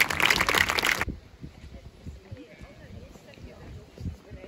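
Wind blows through tall grass.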